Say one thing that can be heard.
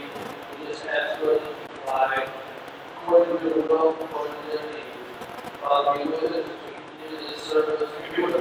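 A man speaks calmly over loudspeakers in a large echoing hall.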